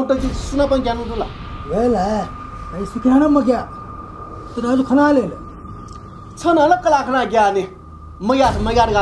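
A middle-aged man speaks earnestly close by.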